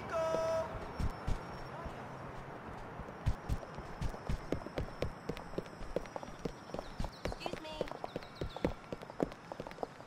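Footsteps thud quickly on a paved path.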